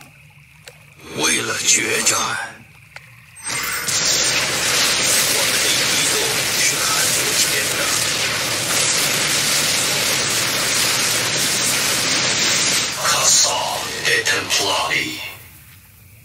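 Energy blasts crackle and boom in a noisy battle.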